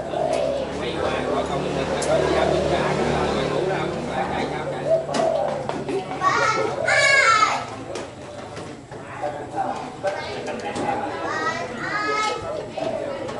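Dishes and glasses clink.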